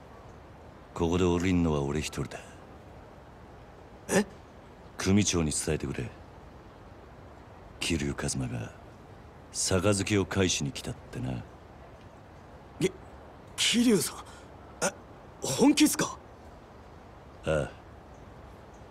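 A man speaks in a deep, firm voice, close by.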